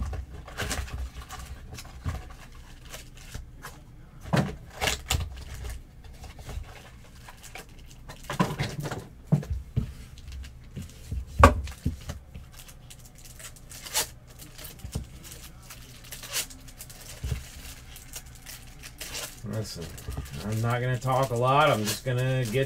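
Cardboard boxes and card packs rustle and tap as hands handle them.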